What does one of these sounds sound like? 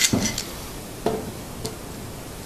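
A metal clamp clicks as it is tightened.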